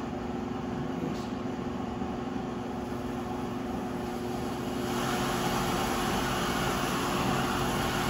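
Liquid pours into a blender jug.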